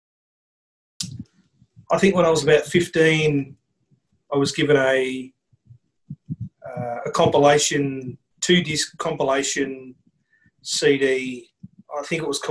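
A middle-aged man speaks calmly and thoughtfully into a computer microphone.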